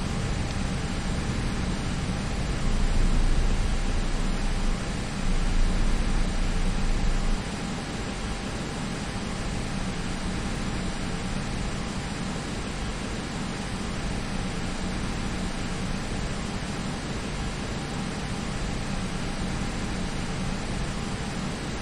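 Jet engines hum steadily as an airliner taxis.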